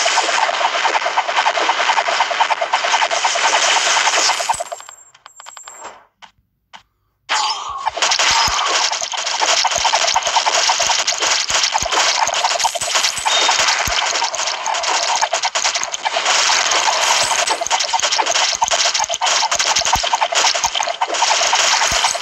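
Mobile game sound effects of rapid shots and hits play.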